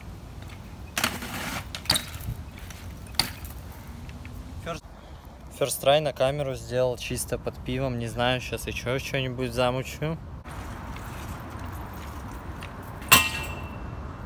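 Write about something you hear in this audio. A bike lands with sharp clacks on concrete.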